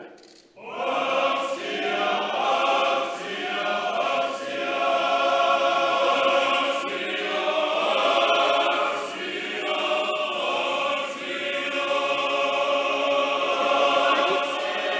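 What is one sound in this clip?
A group of men sing together in a slow chant.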